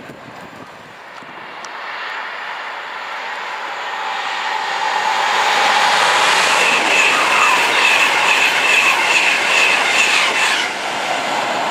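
A second high-speed train approaches and rushes past close by with a rising roar.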